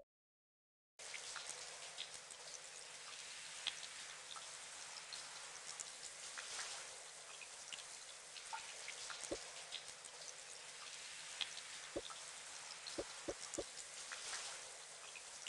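Water from a shower sprays and splashes steadily.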